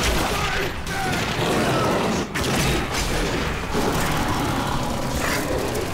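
Gunshots fire rapidly and loudly.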